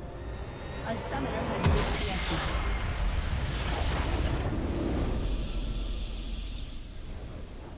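A game's base explodes with a loud rumbling blast.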